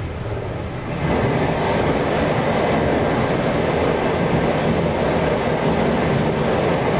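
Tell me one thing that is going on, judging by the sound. A train's noise suddenly swells into a loud, echoing roar inside a tunnel.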